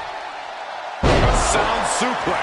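A wrestler is slammed onto a wrestling ring mat with a heavy thud.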